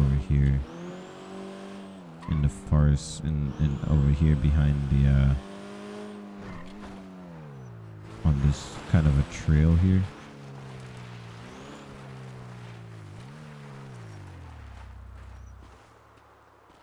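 A car engine hums and revs as the car drives along, rising and falling in pitch.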